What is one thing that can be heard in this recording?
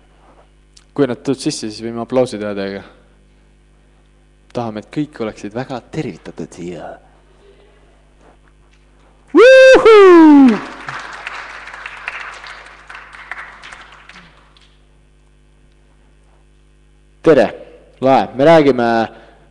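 A young man sings into a microphone in a large echoing hall, in short phrases with pauses.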